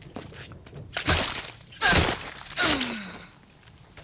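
Knife stabs and blows land with heavy, wet thuds.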